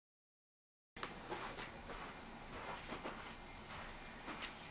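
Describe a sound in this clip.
Footsteps thud softly.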